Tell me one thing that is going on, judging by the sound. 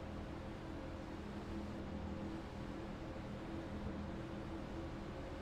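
Racing car engines drone steadily at high speed.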